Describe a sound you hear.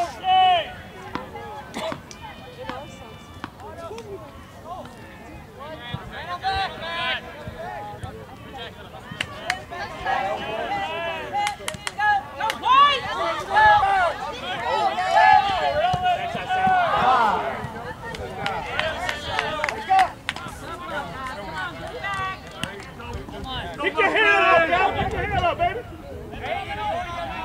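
Men and women in the crowd chat and call out close by, outdoors.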